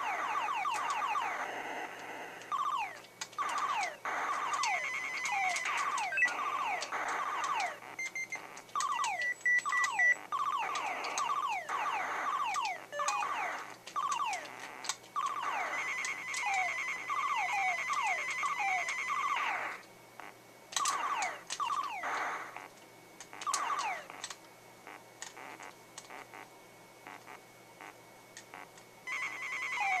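Electronic laser shots fire rapidly in quick bursts.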